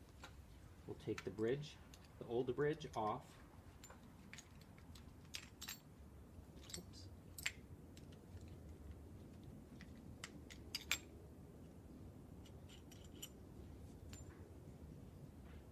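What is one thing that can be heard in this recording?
Metal clips click as hands fasten a harness buckle.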